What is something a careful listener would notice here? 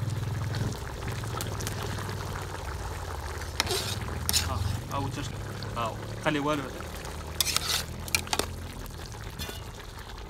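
A metal spatula scrapes and clinks against a cooking pot.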